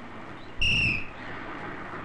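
A bus horn honks briefly.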